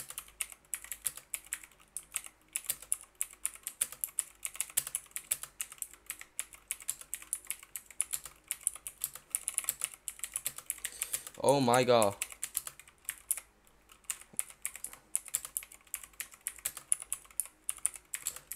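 Keyboard keys clatter in quick, uneven typing.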